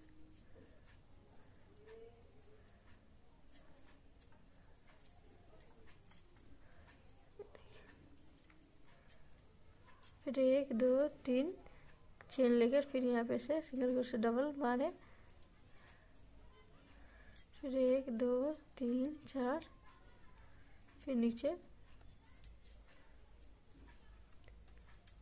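A crochet hook softly rubs and clicks through yarn.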